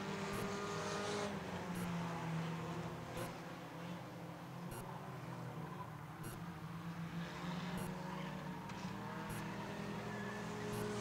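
Race car engines roar steadily around a track.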